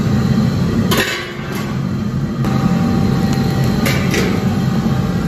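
A metal lid clanks onto a wok and lifts off.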